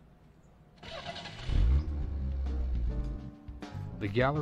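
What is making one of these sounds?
A car engine starts and rumbles.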